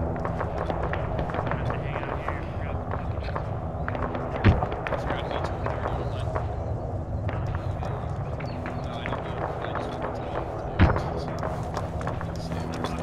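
A shovel scrapes and thuds into dry earth again and again.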